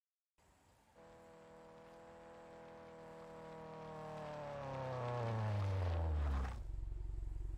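A racing car engine hums and slowly winds down in pitch.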